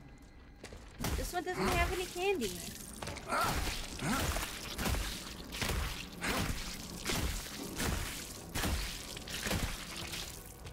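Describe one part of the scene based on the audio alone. Heavy boots stomp repeatedly on a body with wet, squelching thuds.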